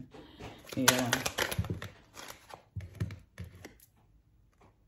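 Playing cards shuffle and riffle between hands close by.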